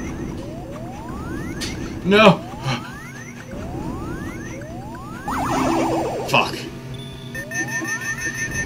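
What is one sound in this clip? Electronic laser zaps fire repeatedly with quick rising tones.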